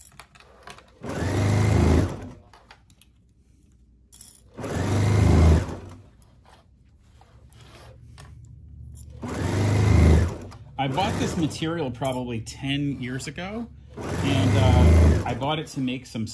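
A sewing machine stitches in short, steady bursts.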